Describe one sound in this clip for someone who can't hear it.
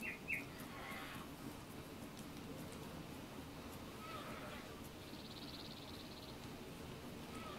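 Footsteps swish through tall grass.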